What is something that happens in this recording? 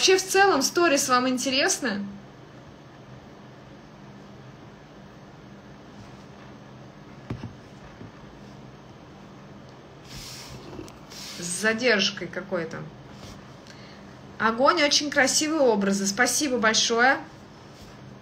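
A woman speaks calmly and close by, in short bursts.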